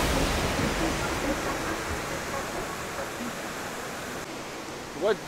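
River water rushes and churns nearby.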